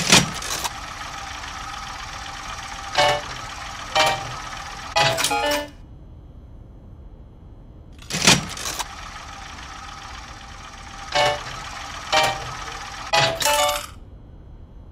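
A slot machine's reels spin with a whirring rattle.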